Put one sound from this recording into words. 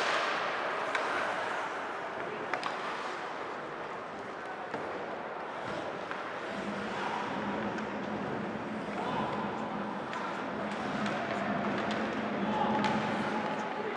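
Sticks and a puck clack sharply now and then.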